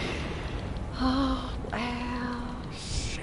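A young woman talks into a microphone.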